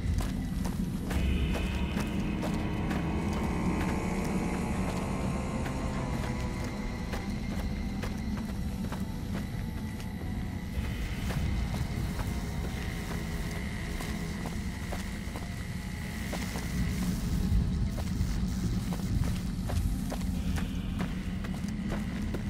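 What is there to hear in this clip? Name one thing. Footsteps crunch steadily on rocky ground.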